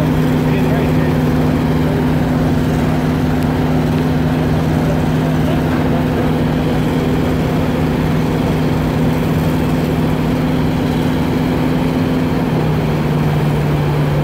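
A boat engine drones steadily close by.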